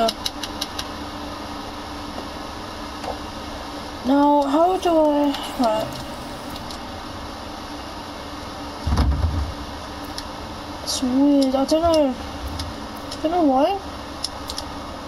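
Soft electronic clicks tick as menu items are selected.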